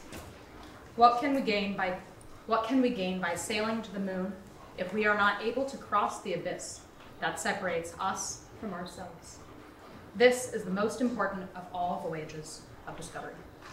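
A woman reads aloud calmly.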